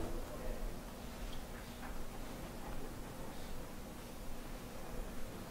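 A man speaks calmly at a distance in an echoing room.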